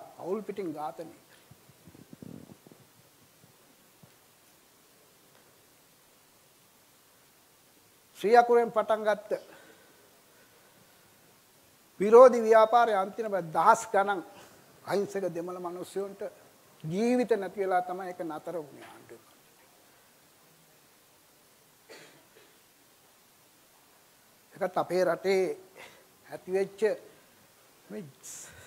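An older man lectures with animation through a microphone, in bursts with long pauses.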